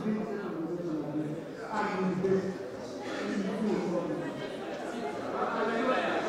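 A man speaks into a microphone with animation in a large chamber.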